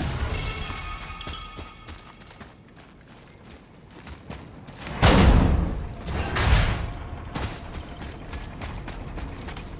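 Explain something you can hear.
Heavy footsteps run across the ground.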